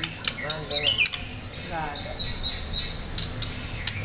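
Wings flutter briefly as a bird hops inside a cage.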